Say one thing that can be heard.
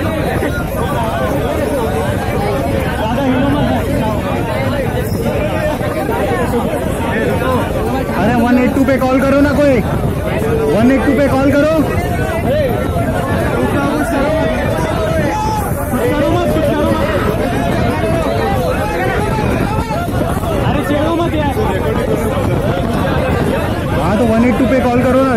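A crowd of young men sing and chant loudly together in a packed, echoing space.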